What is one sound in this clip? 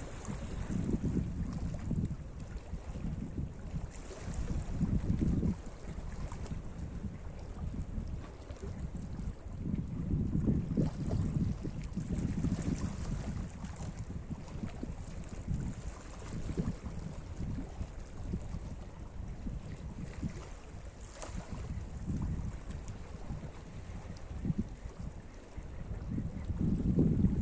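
Small waves lap and splash against rocks close by.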